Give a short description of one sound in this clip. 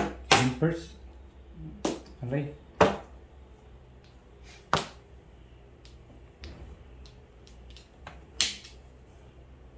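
Mahjong tiles clack and rattle against each other on a table.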